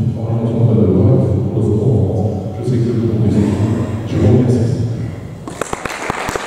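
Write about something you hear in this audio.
A man speaks calmly through a microphone and loudspeakers in a large echoing hall.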